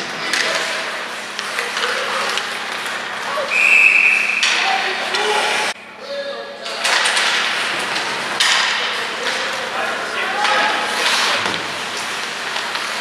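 Ice skates scrape and carve across the ice in an echoing arena.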